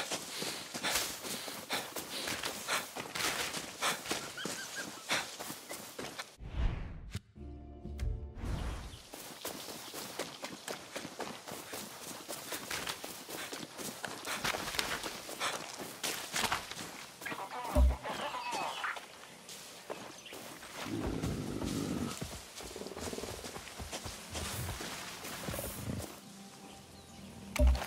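Footsteps rustle through dense grass and leafy undergrowth.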